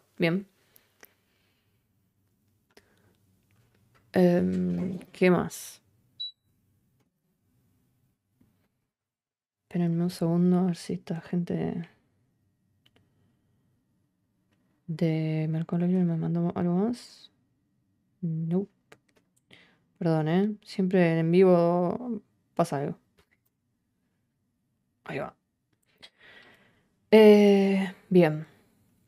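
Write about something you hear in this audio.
A young woman speaks calmly and closely into a microphone, in bursts with pauses.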